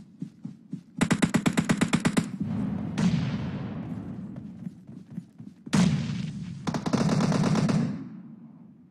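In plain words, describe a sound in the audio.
An assault rifle fires in rapid automatic bursts.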